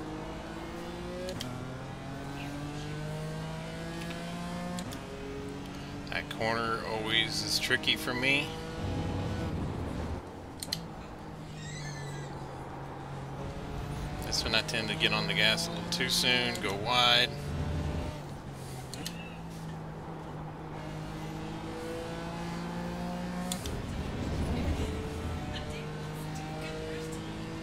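A racing car engine revs up and down through gear changes.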